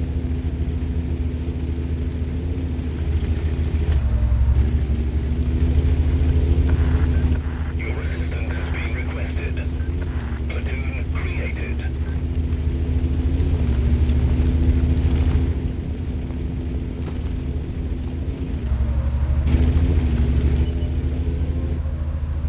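Tank tracks clatter and squeak over rough ground.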